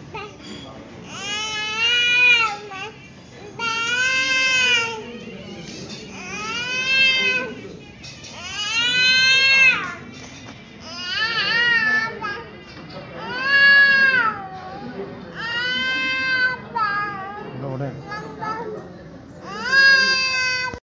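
A young woman sings a short melody close by, repeating it again and again.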